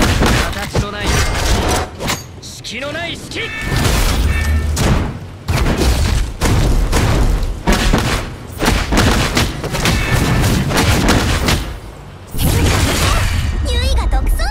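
Sword slashes and impacts clash rapidly in a fight.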